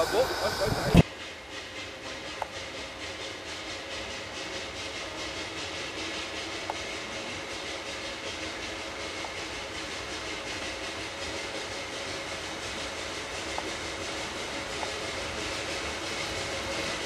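A steam locomotive chuffs steadily in the distance and slowly draws closer.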